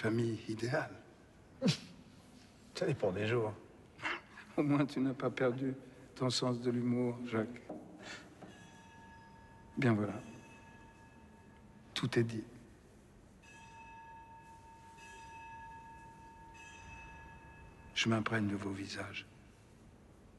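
An elderly man speaks calmly and warmly, close by.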